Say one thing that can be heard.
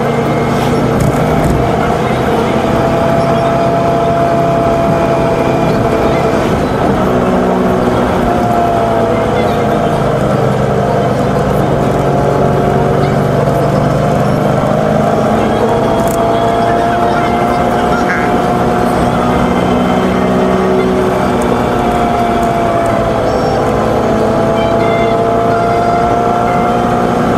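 A car engine hums steadily, its pitch rising and falling as it shifts speed.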